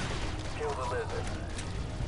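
An energy rifle fires with a crackling electric blast.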